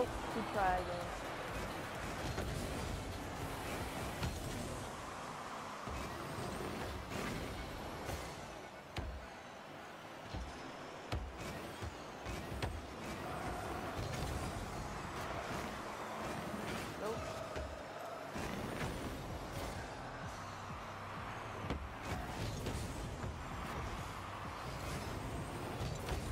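A game car's engine hums and boosts with a rushing roar.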